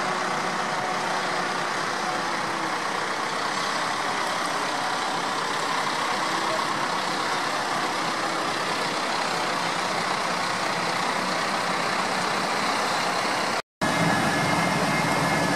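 Tractor engines rumble steadily as tractors drive past close by.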